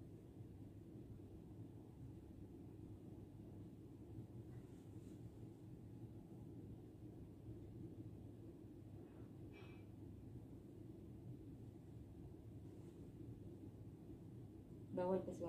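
Fabric rustles softly as a duvet cover is handled and buttoned.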